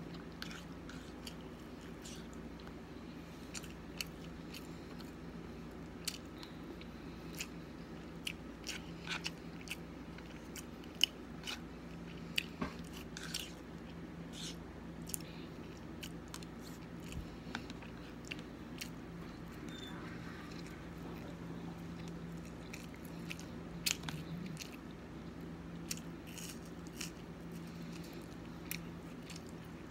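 A young woman chews and smacks her lips close up.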